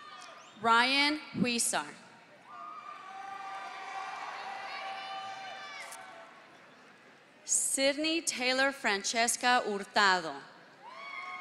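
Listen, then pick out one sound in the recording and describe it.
A man announces names through a loudspeaker in a large echoing hall.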